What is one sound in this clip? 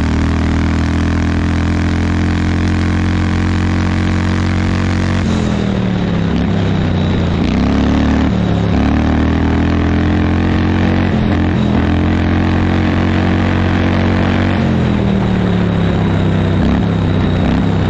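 A small engine runs loudly close by, its pitch rising and falling as it speeds up and slows down.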